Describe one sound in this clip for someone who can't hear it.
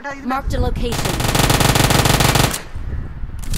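A submachine gun fires a rapid, loud burst.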